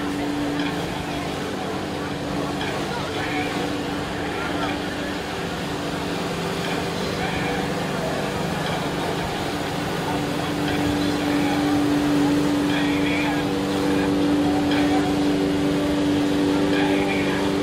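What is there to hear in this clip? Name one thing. Jets of water roar and spray down onto the sea.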